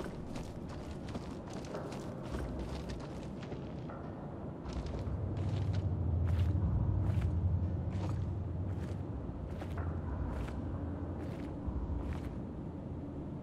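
Footsteps thud steadily along a hard floor.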